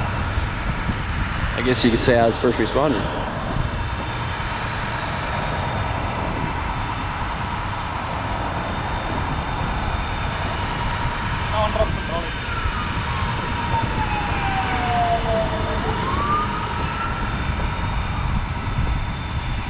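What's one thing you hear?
Wind blows hard outdoors, rumbling against the microphone.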